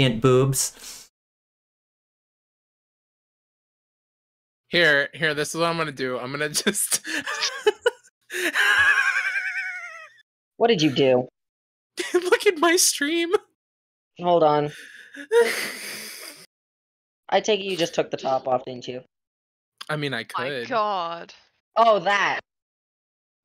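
A young woman talks with animation into a microphone, in bursts with pauses.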